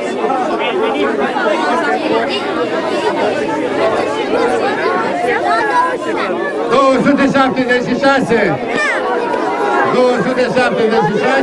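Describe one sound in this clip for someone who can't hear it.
A crowd of children and adults chatters outdoors.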